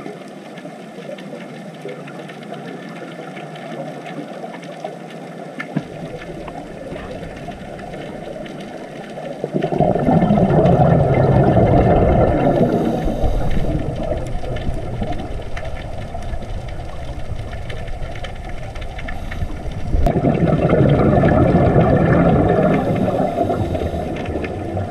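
Bubbles from a diver's breathing gear gurgle and rush underwater.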